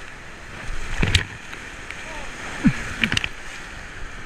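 Waves splash hard against a raft.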